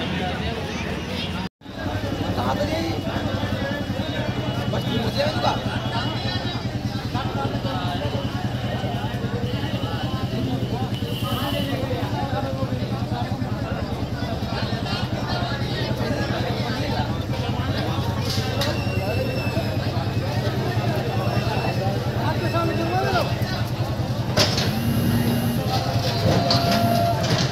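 A crowd of men talks and calls out outdoors.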